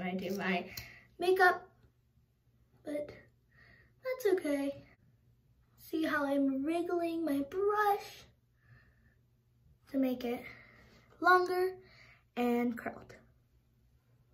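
A young girl talks casually and close by, in short bursts with pauses.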